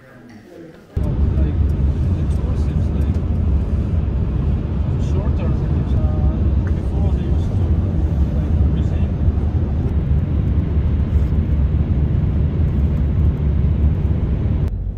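Road noise rumbles inside a car driving at highway speed.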